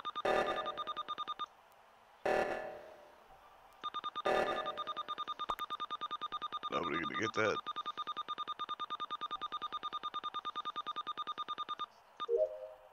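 Rapid electronic ticks repeat as a game counter changes.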